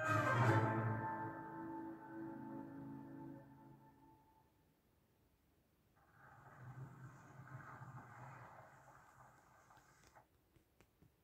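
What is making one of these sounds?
Music plays from a television's speakers, fading out and then swelling again.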